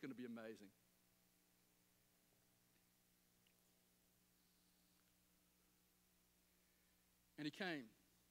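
A middle-aged man speaks through a microphone in short bursts with long pauses.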